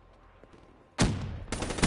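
A rifle fires loud, sharp shots close by.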